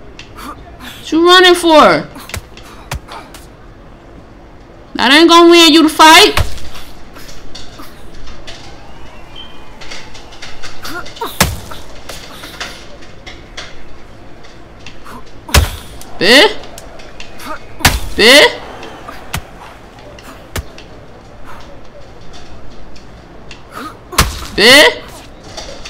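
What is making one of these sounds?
Padded gloves thud as punches land.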